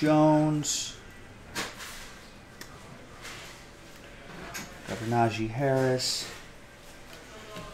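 Trading cards rustle and slide in hands.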